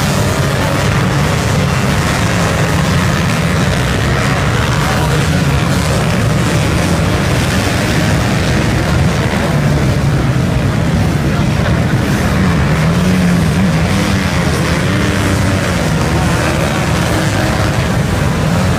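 Many motorcycle engines rev and roar loudly, rising and falling in pitch.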